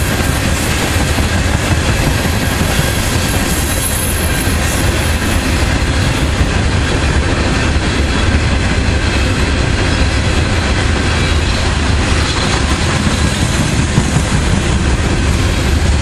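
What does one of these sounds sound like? A long freight train rumbles past close by, its wheels clattering loudly over the rails.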